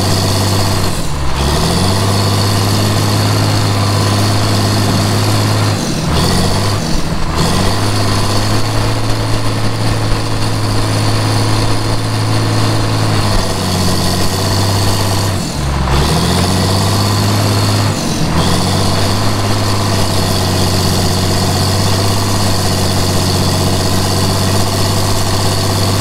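A diesel bulldozer engine roars loudly up close, its pitch dipping and rising with the load.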